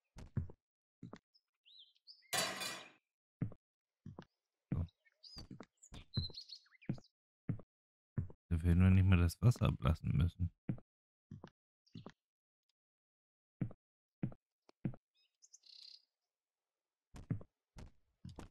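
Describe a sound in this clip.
Footsteps tap on a hard floor at an even pace.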